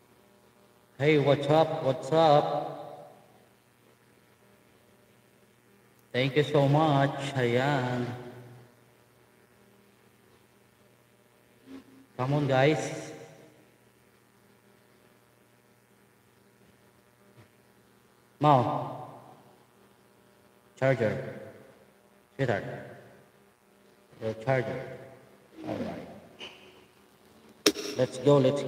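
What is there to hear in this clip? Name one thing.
A man speaks into a microphone close up, in short bursts with pauses.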